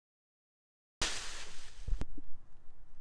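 Leafy plants rustle as a boy falls back into them.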